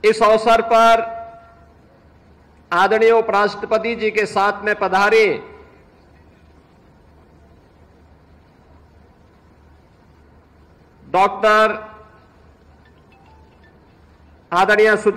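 A middle-aged man speaks with emphasis into a microphone over a loudspeaker, in bursts with long pauses.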